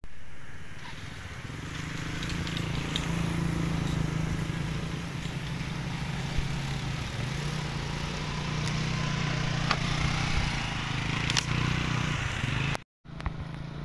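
A scooter engine hums steadily as it rides over rough ground.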